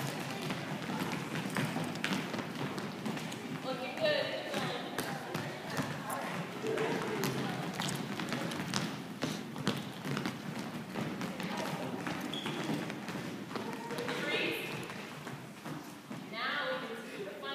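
Jump ropes slap and click on a wooden floor.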